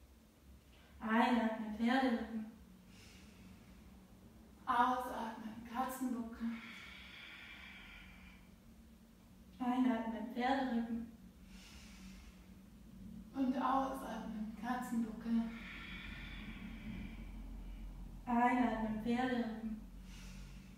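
A woman speaks calmly in short phrases, as if giving instructions.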